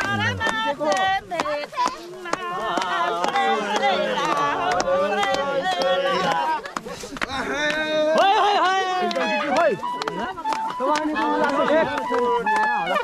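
People clap their hands in a steady rhythm.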